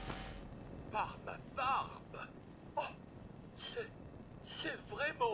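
A robot speaks in a clipped, synthetic male voice.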